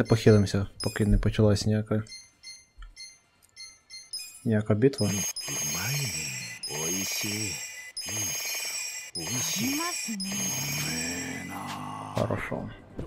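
Short menu chimes and clicks sound one after another.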